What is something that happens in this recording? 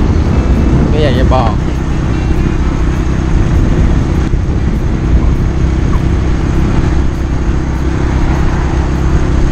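A scooter engine hums steadily while riding.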